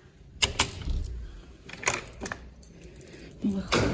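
A key rattles and clicks in a lock.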